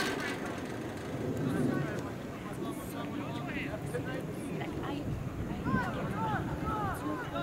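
Young players shout to each other from across an open field.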